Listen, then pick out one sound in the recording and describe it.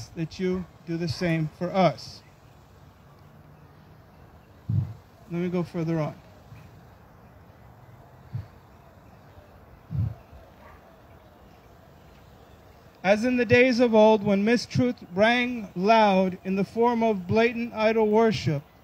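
A man speaks into a microphone outdoors, in short phrases with long pauses.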